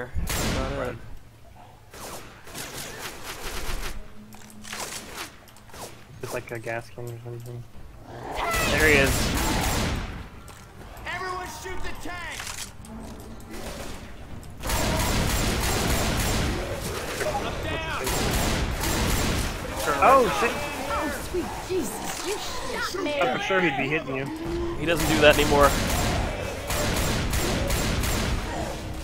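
A shotgun fires in rapid bursts.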